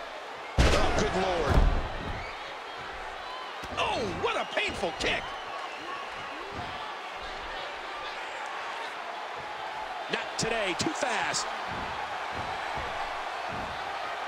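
A crowd cheers steadily.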